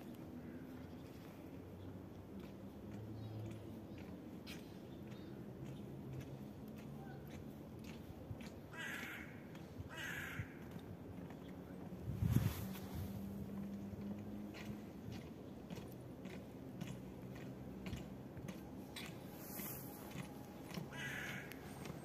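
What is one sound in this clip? Boots step in unison on stone stairs outdoors.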